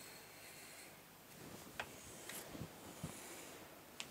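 A ruler slides and taps on paper.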